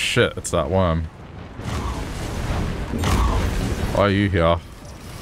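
Crackling magical energy whooshes and hums.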